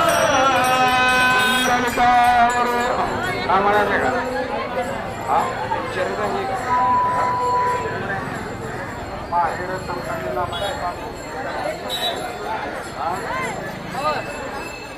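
A large crowd of men sings and chants loudly outdoors.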